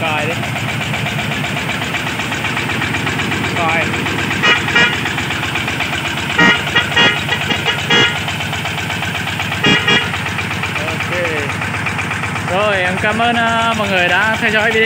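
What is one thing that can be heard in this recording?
A diesel engine chugs steadily close by.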